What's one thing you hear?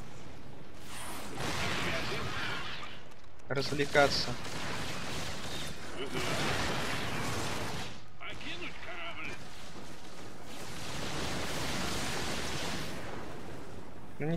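Gunfire and explosions rattle through a battle.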